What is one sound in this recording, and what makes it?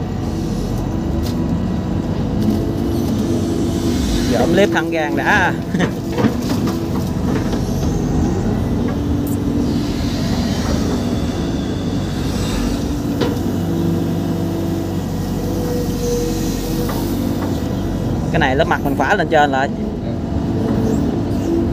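Wet earth thuds and slides off an excavator bucket.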